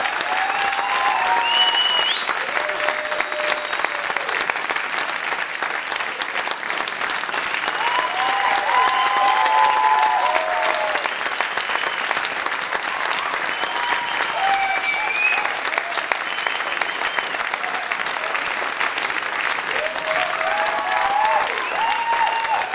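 An audience cheers and whoops.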